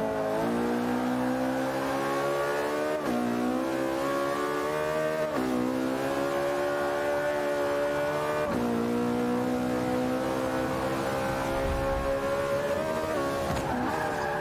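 A racing car engine revs high, climbing in pitch and dropping sharply with each gear change.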